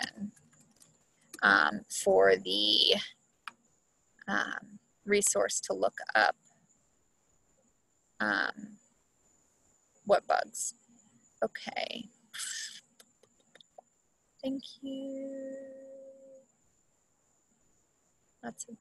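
A woman speaks calmly through an online call microphone, pausing often.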